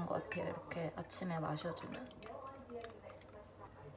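A spoon stirs and clinks against a glass jar.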